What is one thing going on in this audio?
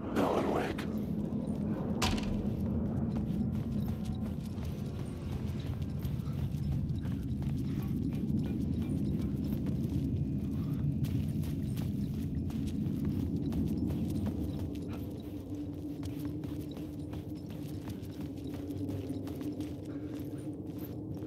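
Footsteps crunch slowly on gravel and a hard floor.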